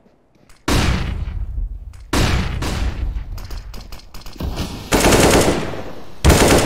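Loud game blasts and gunshots boom in sudden bursts.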